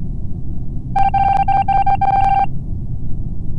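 Quick electronic beeps tick in rapid succession.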